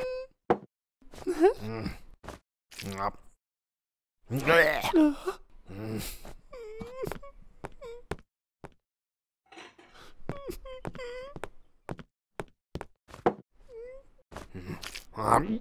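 A man speaks and grumbles, close by.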